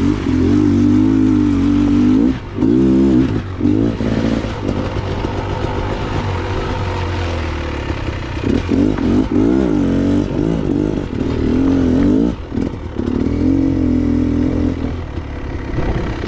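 A dirt bike engine revs up and down loudly.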